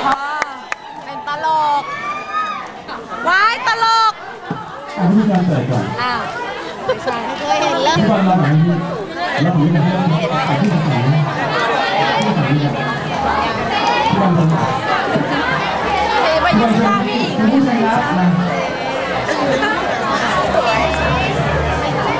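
A crowd of young women chatter, squeal and laugh close by.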